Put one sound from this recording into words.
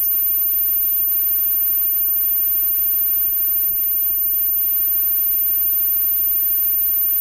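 A band plays loud rock music with electric guitars and drums.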